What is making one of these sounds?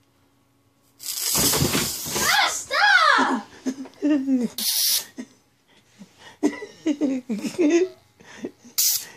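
A young boy shouts and laughs excitedly close by.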